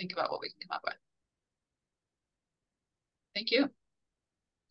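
A woman speaks briefly through an online call.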